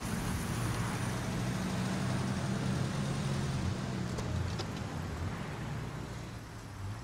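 Traffic hums steadily on a street.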